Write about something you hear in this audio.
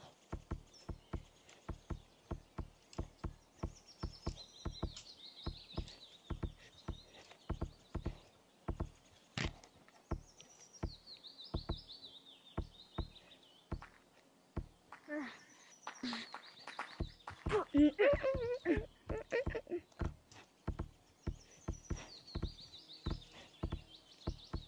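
Light, quick thuds of claws and feet climbing a wooden post repeat steadily.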